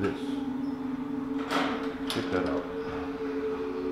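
A door opens with a click.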